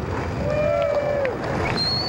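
A crowd of young men cheers and shouts outdoors.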